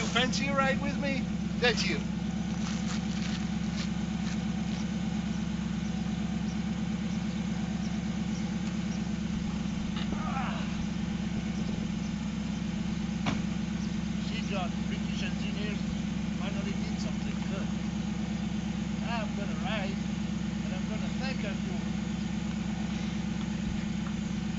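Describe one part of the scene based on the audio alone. A car engine idles steadily with a low throbbing rumble.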